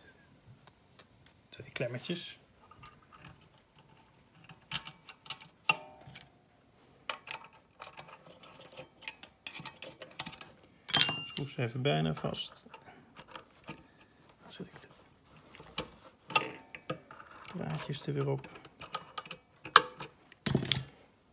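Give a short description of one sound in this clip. Small metal parts click and clink as a man works with pliers.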